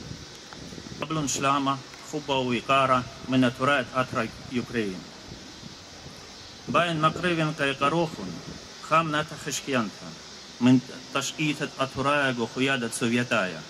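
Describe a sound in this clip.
An elderly man speaks steadily into a microphone outdoors, with pauses.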